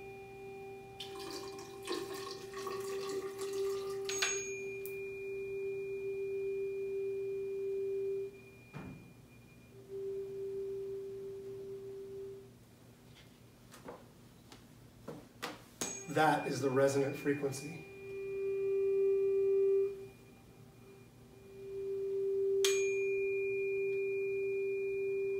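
A steady humming tone sounds from a tall tube and swells and fades.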